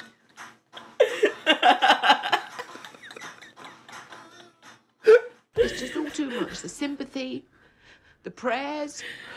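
A woman laughs loudly close to a microphone.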